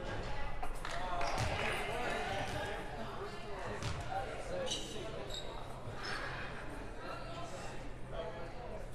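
Spectators chatter in the stands.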